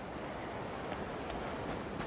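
Footsteps run along pavement.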